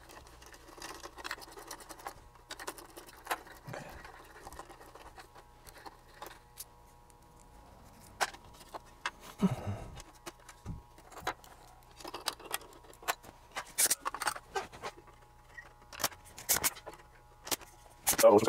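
Small metal parts clink and rattle in a metal case.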